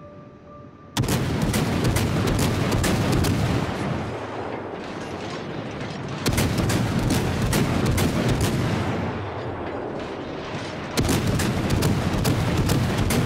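Heavy ship guns fire in loud, booming salvos that rumble on.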